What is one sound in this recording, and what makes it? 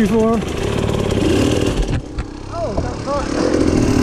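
A dirt bike tips over and thuds into brush.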